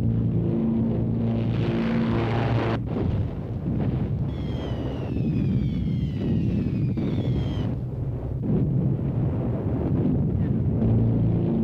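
Aircraft engines drone loudly overhead.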